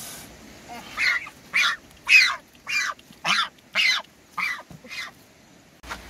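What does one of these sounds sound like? A duck quacks loudly over and over.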